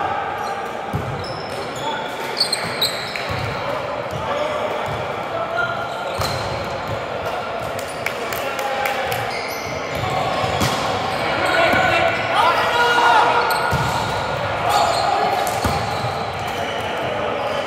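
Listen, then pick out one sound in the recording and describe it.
Young men shout and call out to each other in a large echoing gym.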